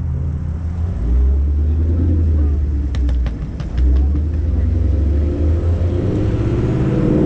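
A car engine revs louder nearby.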